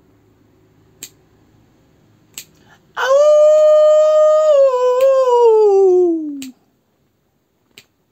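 A young man snaps his fingers close by.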